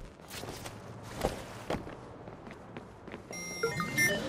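Footsteps thud on a hard rooftop.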